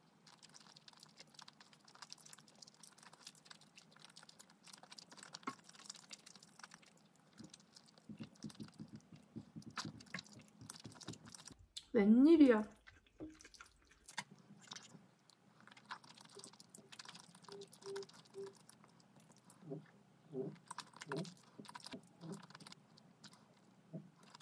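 A young woman chews food with wet, smacking sounds.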